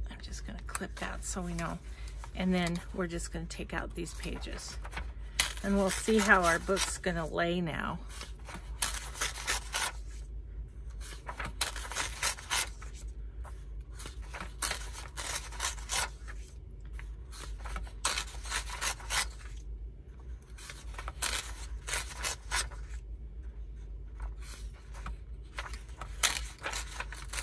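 Paper pages rustle and flap as they are turned one after another.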